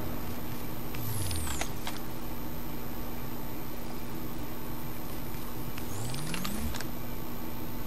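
A rifle is lowered and raised again with a brief mechanical whir.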